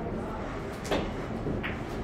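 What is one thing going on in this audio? A pool cue strikes a ball with a sharp click.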